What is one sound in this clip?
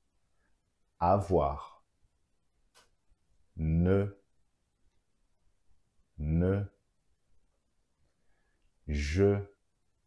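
A man speaks clearly and slowly into a close microphone, saying single words with pauses between them.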